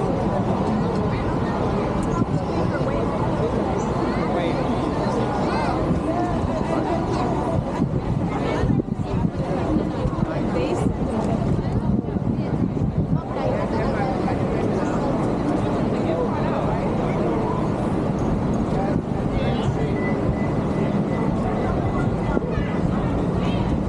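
City traffic rumbles steadily nearby.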